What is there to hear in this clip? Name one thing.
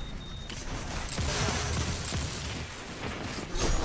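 An explosion booms with a loud roar.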